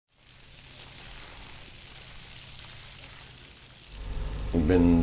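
Water sprays hard from a hose with a steady hiss.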